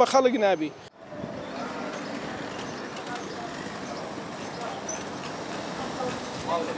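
A busy street murmurs outdoors with distant traffic and voices.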